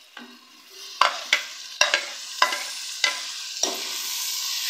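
A metal spoon scrapes and taps against a plate.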